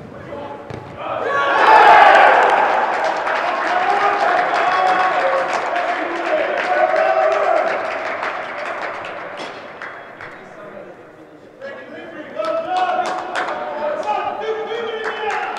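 Young men cheer and shout loudly in an echoing hall.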